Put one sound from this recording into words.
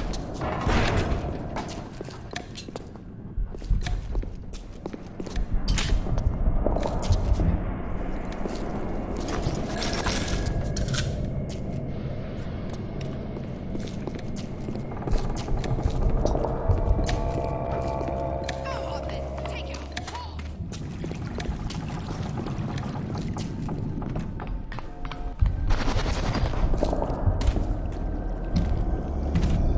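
Footsteps tap on hard stone floors.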